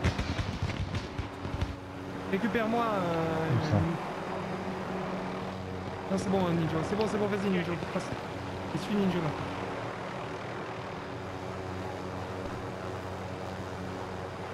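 A helicopter engine and rotor drone steadily in flight.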